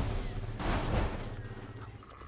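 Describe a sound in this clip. A heavy thud lands.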